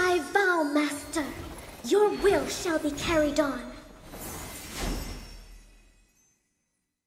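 A sparkling magical whoosh swirls and fades.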